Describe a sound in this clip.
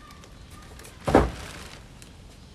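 A heavy bag thuds down onto a wooden deck.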